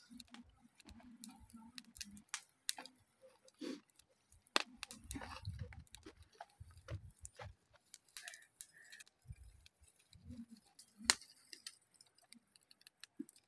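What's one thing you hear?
Charcoal crackles and pops softly under a grill.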